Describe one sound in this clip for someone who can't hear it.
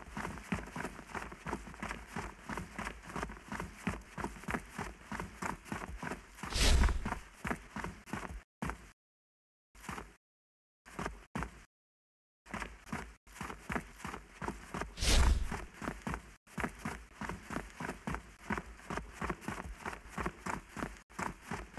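Footsteps crunch quickly on sand.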